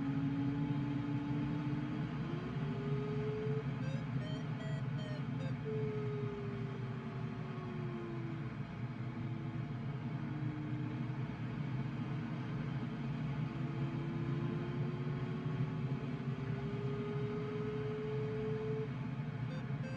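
A glider's variometer hums a tone that slowly rises and falls in pitch.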